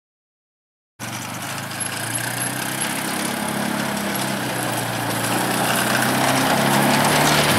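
An all-terrain vehicle engine hums steadily and grows louder as it drives closer.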